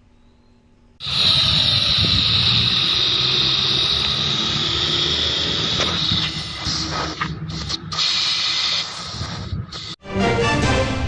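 Gas hisses loudly and steadily from a cylinder valve.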